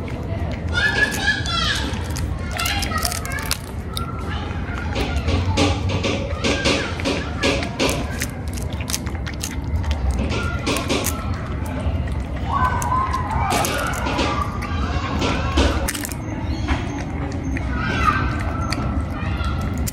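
A cat eats wet food noisily, with quick smacking and licking sounds.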